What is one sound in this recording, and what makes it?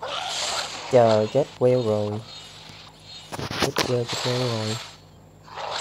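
A dragon lets out a shrill cry.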